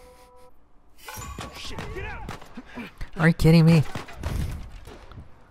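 Another man shouts a warning.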